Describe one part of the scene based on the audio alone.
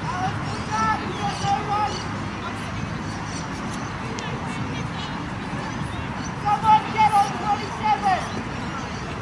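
Young women shout in the distance across an open field.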